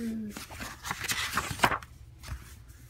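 A page of a book turns with a papery rustle.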